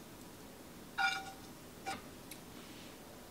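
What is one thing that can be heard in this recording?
A metal pan clinks against a plate as food slides off it.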